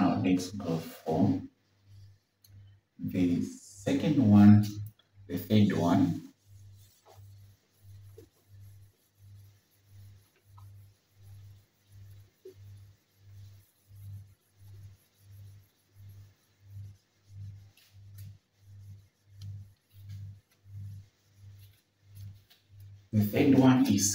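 A whiteboard eraser rubs across a board.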